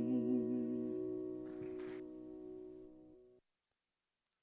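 A middle-aged woman sings a final held note through a microphone, which slowly fades.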